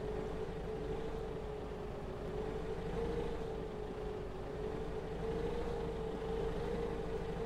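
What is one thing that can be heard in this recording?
A forklift engine hums steadily as the forklift drives slowly.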